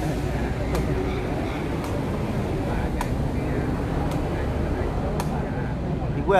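A ball is kicked with sharp, regular thuds.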